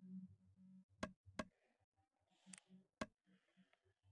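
Keyboard keys click a few times.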